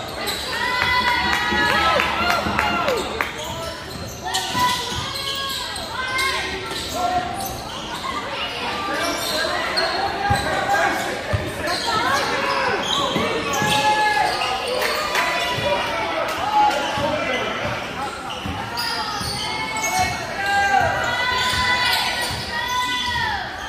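Sneakers squeak sharply on a hardwood court, over and over.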